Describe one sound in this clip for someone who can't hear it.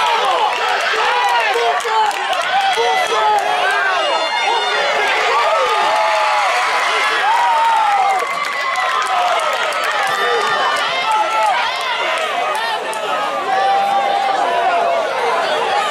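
A crowd of spectators cheers and shouts from the stands outdoors.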